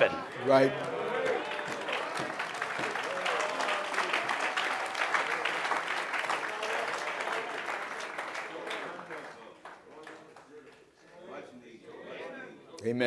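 A man speaks loudly into a microphone in a large echoing hall.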